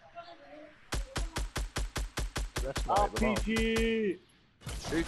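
A gun fires a rapid string of shots.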